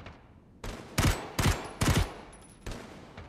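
A rifle fires several shots.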